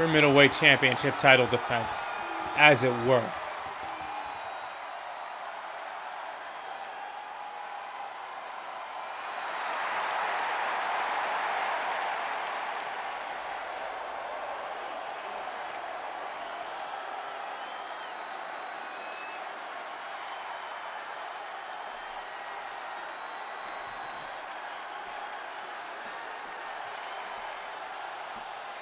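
A large crowd cheers and roars in a big arena.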